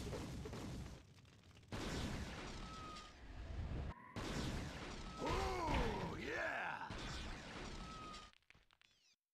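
Rocks crumble and break apart.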